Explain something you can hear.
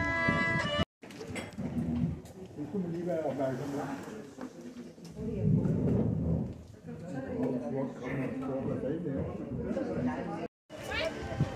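Men and women chat quietly in a room with some echo.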